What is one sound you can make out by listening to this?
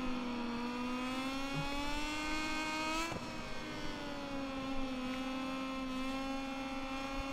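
A motorcycle engine whines loudly, rising in pitch and then dropping as it shifts gear.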